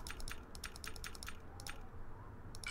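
Game menu clicks tick in quick succession.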